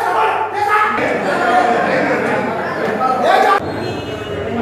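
A crowd of men murmur and talk in a busy echoing room.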